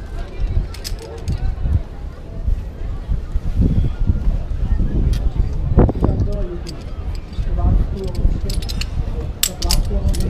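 Wind rumbles outdoors, buffeting the microphone.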